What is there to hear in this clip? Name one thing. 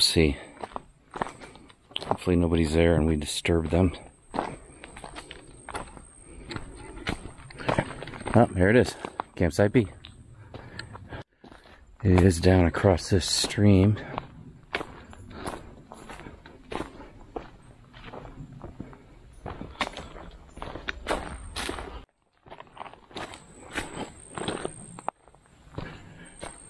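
Footsteps crunch on a dry dirt path.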